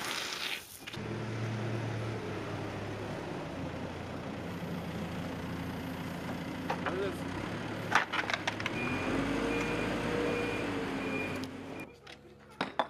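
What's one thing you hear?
A loader's diesel engine rumbles steadily nearby.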